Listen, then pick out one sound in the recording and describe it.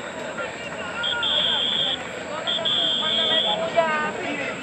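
A referee's whistle blows two long, shrill blasts.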